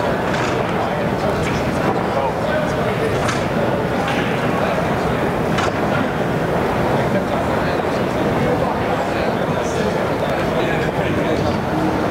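Pool balls click as they are racked on a table.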